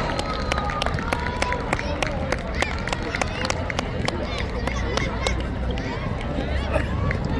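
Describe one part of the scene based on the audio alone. Children shout and call out during a game.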